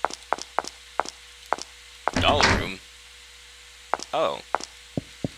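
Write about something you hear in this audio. Footsteps tap lightly and evenly on a hard floor.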